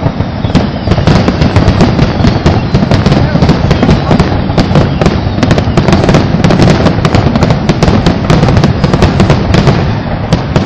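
Fireworks crackle and pop rapidly in the distance.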